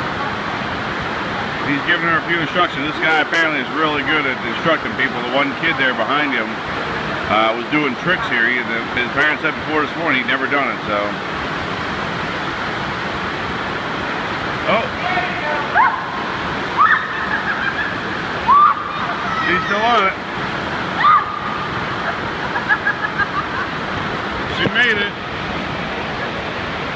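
Water rushes and churns steadily down a wave slide.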